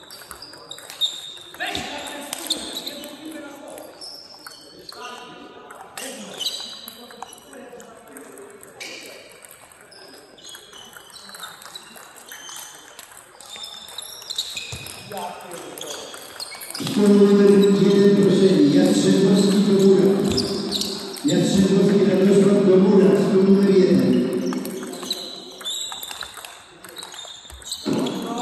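A table tennis ball clicks back and forth on paddles and a table in an echoing hall.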